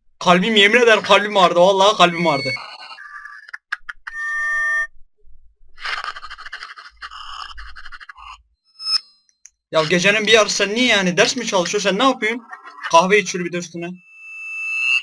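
A young man speaks with animation into a microphone, heard close up.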